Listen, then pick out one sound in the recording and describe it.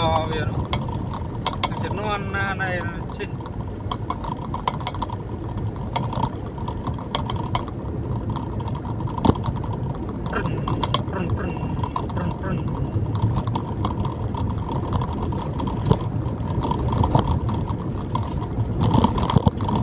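A car engine rumbles steadily as it drives along a wet road.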